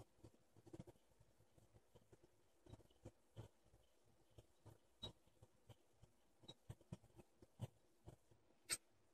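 A blade scrapes in short strokes across a sharpening stone.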